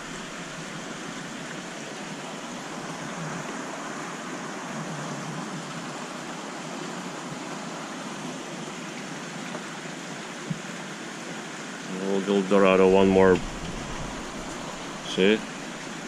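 Water gurgles and hisses steadily from a tank filter.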